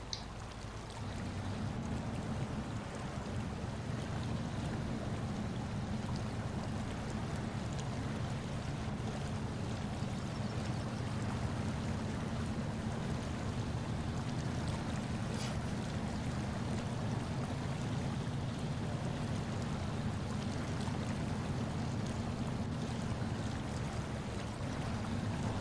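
Water splashes and churns around truck wheels.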